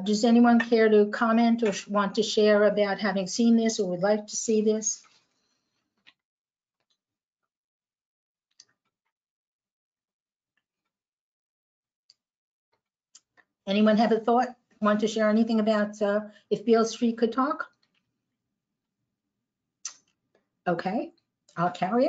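An older woman speaks calmly through a microphone, with pauses.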